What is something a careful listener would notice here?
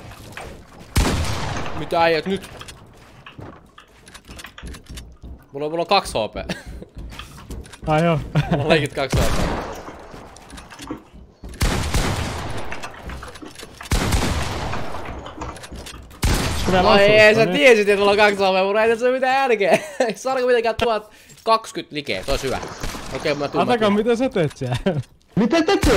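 Gunfire and building noises from a video game crackle in bursts.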